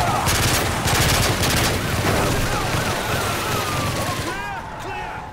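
Rapid gunfire crackles loudly.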